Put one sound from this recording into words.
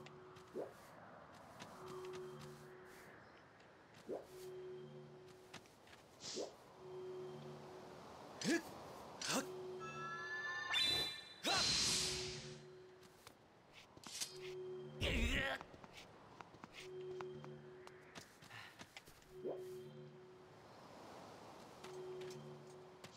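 A gentle melody with soft repeating notes plays throughout.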